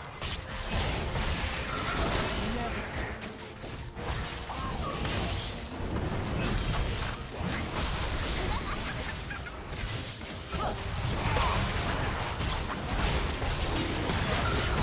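Spell blasts and magic effects crackle and boom in a fight.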